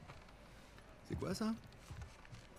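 A young man asks a question.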